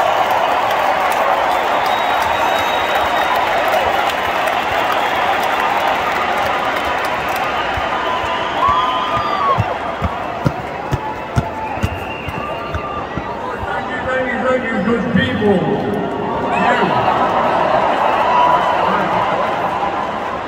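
A crowd chatters and murmurs loudly all around in a large echoing room.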